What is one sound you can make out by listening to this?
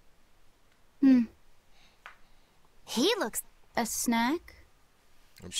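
A young boy speaks briefly, close by.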